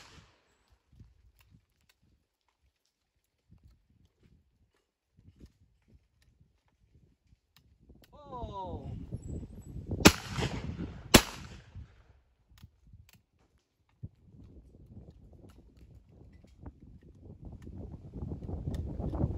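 A shotgun clicks and snaps as it is broken open and reloaded.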